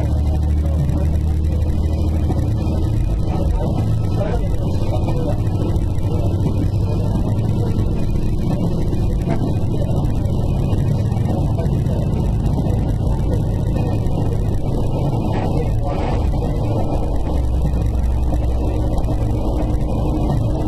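A train rumbles steadily along the rails with a low engine drone.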